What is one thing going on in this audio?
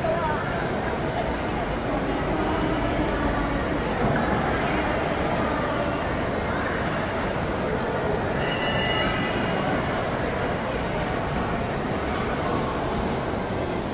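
A crowd of shoppers chatters in a large, echoing indoor hall.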